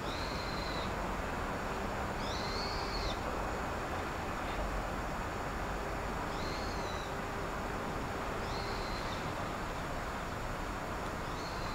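A car drives slowly across railway tracks nearby.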